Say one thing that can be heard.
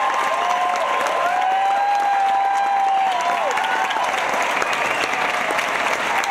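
A large audience claps and cheers loudly in a big hall.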